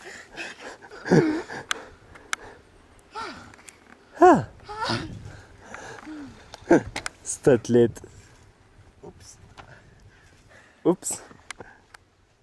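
A young man groans and talks breathlessly up close.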